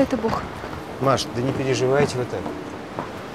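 A man speaks nearby in a calm voice.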